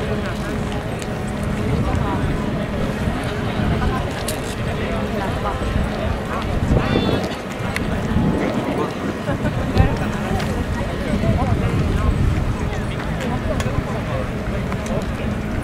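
Wind blows in gusts.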